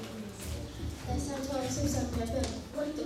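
A young woman reads out calmly through a microphone.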